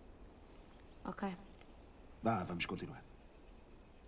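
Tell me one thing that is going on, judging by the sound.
A young girl answers briefly.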